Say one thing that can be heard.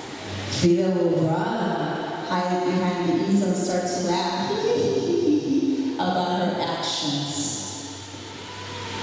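A young man speaks loudly and with animation in a large hall.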